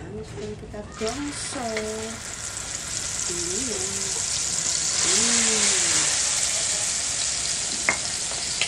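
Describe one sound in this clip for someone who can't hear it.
Chili paste sizzles loudly as it fries in a hot pan.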